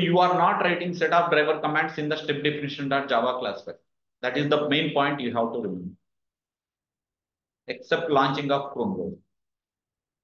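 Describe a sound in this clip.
A young man speaks calmly into a microphone, explaining.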